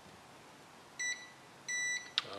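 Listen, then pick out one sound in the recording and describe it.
A multimeter gives short, high electronic beeps.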